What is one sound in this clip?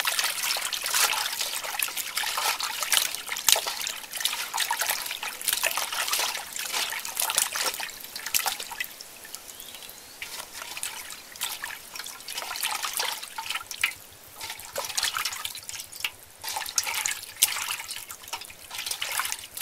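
Hands splash and slosh water in a metal bowl.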